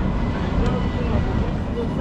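A tram hums as it passes close by.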